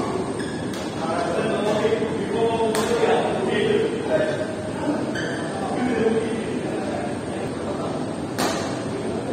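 Young men and women chatter and call out in a large echoing hall.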